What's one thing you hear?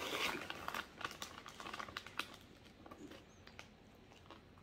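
A plastic snack bag crinkles and rustles close by.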